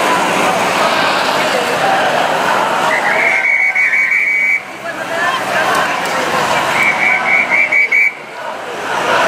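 A large crowd cheers and chants outdoors.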